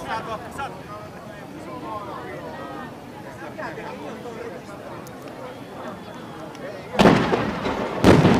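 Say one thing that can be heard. Firework rockets whistle as they shoot upward.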